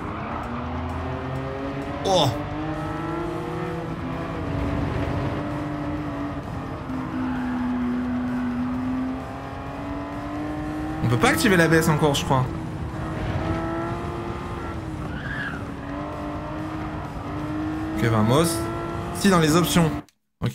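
A race car engine roars steadily, rising and falling in pitch.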